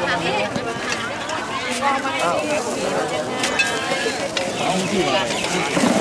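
A crowd of elderly women chatter nearby outdoors.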